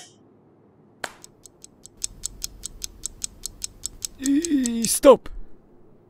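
A wristwatch ticks steadily.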